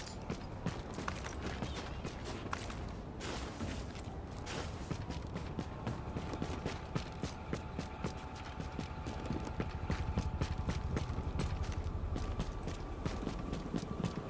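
Footsteps thud and crunch steadily on a snowy wooden deck.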